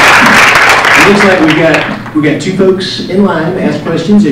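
A man speaks to an audience in a room.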